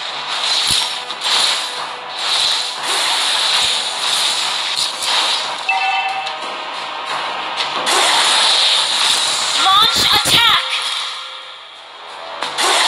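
Fiery magic blasts whoosh and crackle in a video game.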